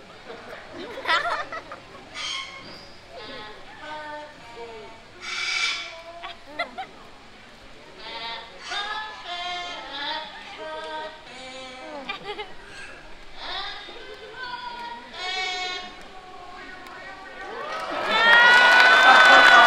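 A parrot squawks.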